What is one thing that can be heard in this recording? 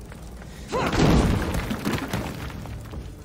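Fire bursts with a loud whoosh and crackle.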